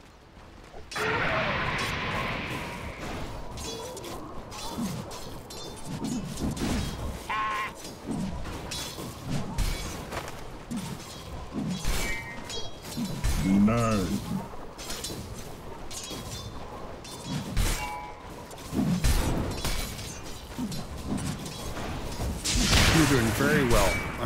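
Game battle effects clash, zap and crackle in quick bursts.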